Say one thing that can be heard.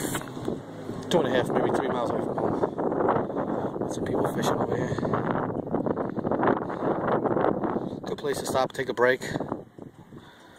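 A flock of geese honks on the shore.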